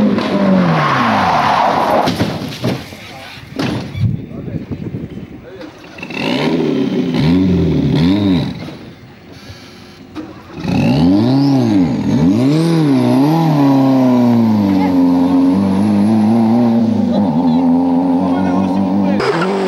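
A rally car engine roars and revs hard as the car accelerates past.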